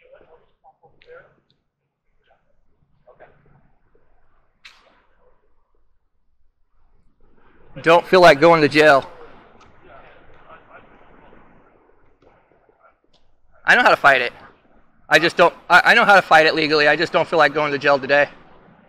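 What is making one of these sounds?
Men talk quietly at a distance outdoors.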